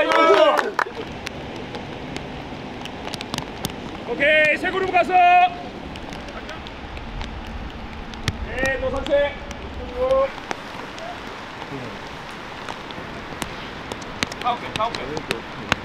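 Young men talk and call out nearby, outdoors.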